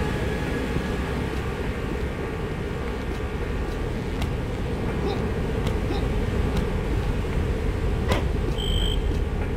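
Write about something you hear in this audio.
Footsteps tread softly across the ground.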